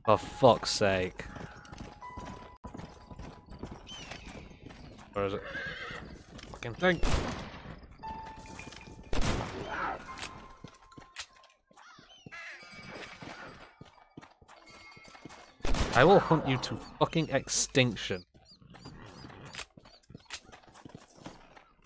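Horse hooves thud steadily on dry ground.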